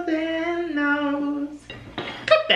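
A woman sings a short tune close by.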